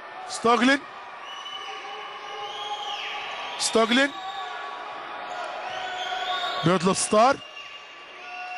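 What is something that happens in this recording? Sneakers squeak on a court.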